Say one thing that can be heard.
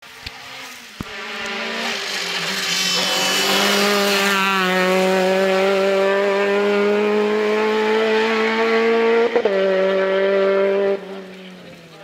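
A rally car engine roars loudly as the car speeds past and revs through a bend.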